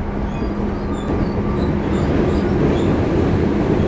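Train wheels clatter over rail joints, growing louder.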